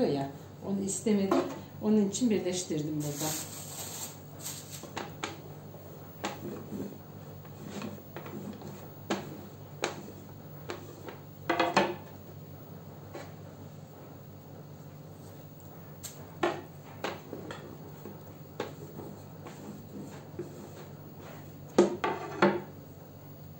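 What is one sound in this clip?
A wooden rolling pin knocks against a wooden board.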